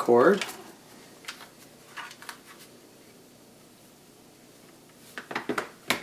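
A cable rattles and scrapes on a tabletop.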